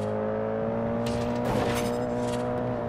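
A car crashes through a sign with a loud bang.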